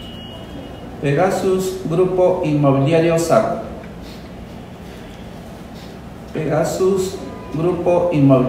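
An older man speaks calmly into a microphone.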